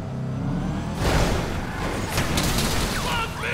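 Tyres screech as a car slides to a stop.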